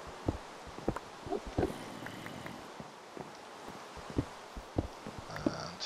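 A pickaxe chips at stone with sharp, repeated knocks.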